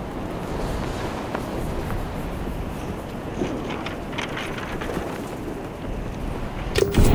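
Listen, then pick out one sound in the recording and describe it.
Wind blows steadily outdoors, rumbling low.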